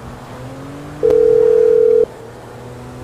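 A phone rings with a steady tone.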